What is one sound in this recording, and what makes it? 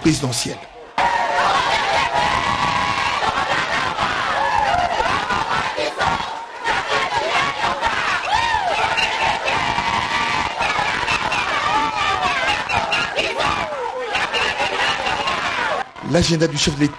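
A crowd of women sings and cheers loudly.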